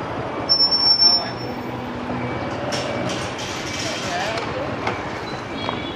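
A motor scooter engine idles close by.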